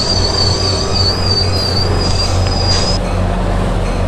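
A train horn blares as a train approaches.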